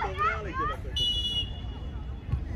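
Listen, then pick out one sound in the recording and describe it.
A referee's whistle blows briefly.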